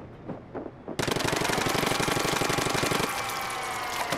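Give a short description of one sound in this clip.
A loud gushing spray of liquid bursts out and hisses.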